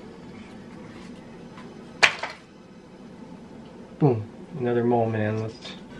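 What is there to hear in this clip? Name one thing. Cards rustle and slide against each other.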